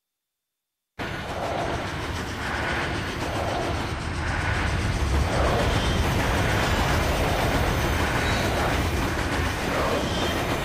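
A heavy train rumbles steadily along rails.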